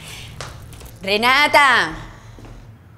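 An elderly woman exclaims loudly.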